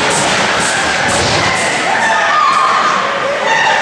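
Skates scrape across ice in a large echoing rink.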